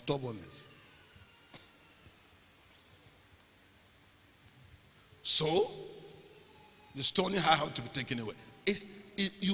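A man speaks with animation through a microphone in an echoing hall.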